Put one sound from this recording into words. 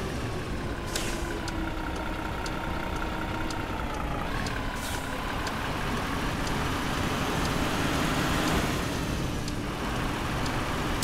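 A truck's turn signal ticks.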